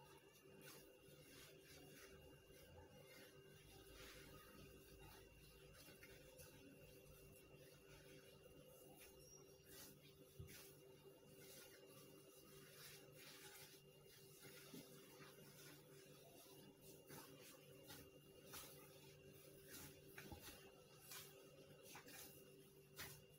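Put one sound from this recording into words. Hands knead soft dough, with soft slaps and squishes against a clay dish.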